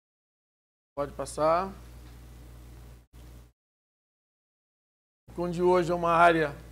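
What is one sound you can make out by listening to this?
A man speaks into a microphone in a calm, presenting manner.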